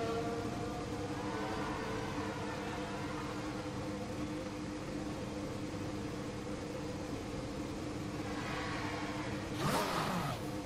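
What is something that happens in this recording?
A racing car engine hums steadily at low speed.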